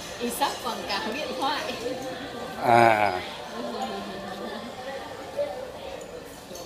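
A young girl talks playfully close by.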